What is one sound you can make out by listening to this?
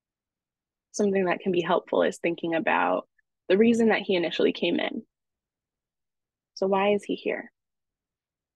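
A woman speaks calmly into a microphone, as on an online call.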